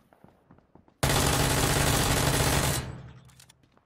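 Gunfire rattles in a loud rapid burst.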